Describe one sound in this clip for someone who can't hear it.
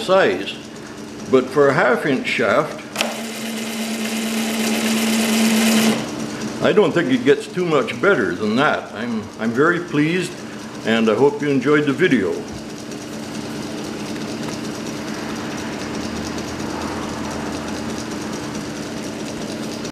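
A chain drive rattles softly as it turns.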